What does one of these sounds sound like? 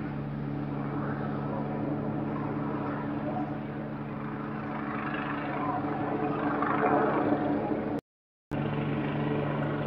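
A helicopter drones steadily overhead with a low, thudding hum.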